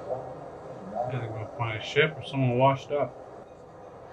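A man speaks briefly and calmly close to a microphone.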